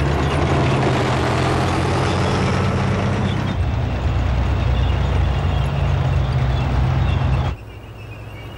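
A tank engine rumbles loudly close by.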